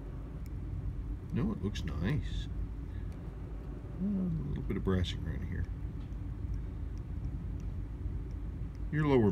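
Metal tweezers click faintly against a small watch part.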